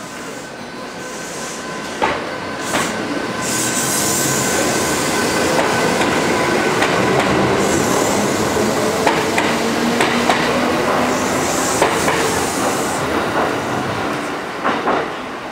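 A train rumbles slowly past close by.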